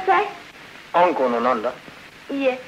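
A young man speaks.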